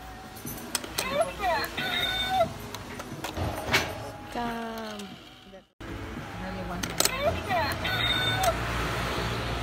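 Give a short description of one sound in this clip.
A toy coin bank plays a cat's meow through a small tinny speaker.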